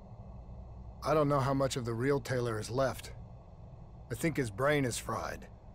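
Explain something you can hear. A man speaks in a low, gruff voice over a radio.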